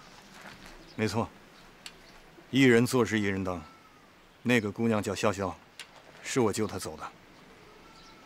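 A younger man answers firmly, close by.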